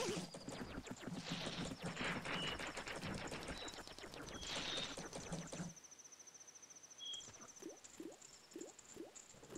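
Video game music and sound effects play.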